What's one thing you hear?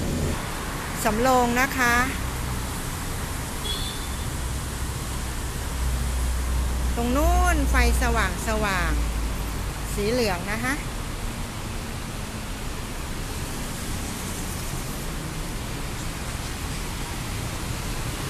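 Road traffic rumbles steadily below.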